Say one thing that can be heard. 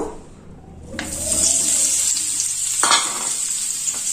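Potatoes tumble into a hot pan.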